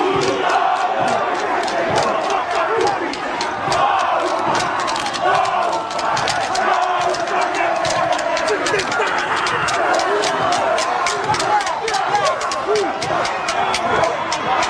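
A team of men chant loudly together in rhythm, with shouts.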